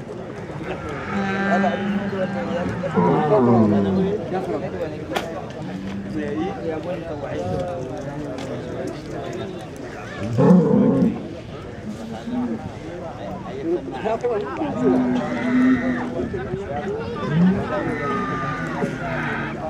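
A large outdoor crowd of men chatters and shouts.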